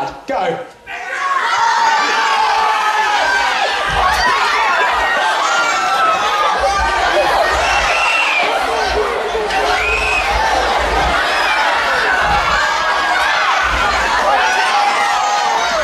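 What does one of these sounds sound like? A large crowd of children screams and cheers excitedly in a large echoing hall.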